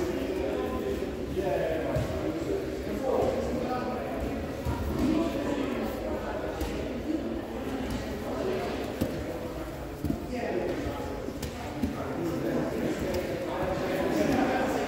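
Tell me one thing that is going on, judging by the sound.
Many people talk in the background of a large echoing hall.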